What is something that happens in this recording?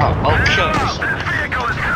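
A shell explodes on impact.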